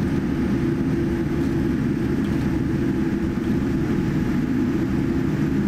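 Jet engines hum steadily inside an aircraft.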